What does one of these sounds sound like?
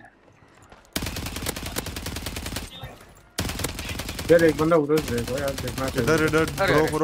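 Rapid automatic gunfire rattles.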